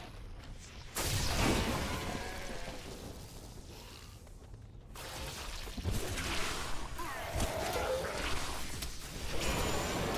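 Game spells crackle and boom in bursts.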